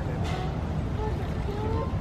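Water splashes from a thrown bucketful.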